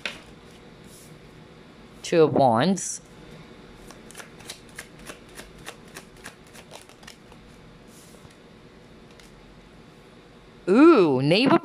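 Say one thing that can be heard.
A card is laid down with a soft tap on a wooden table.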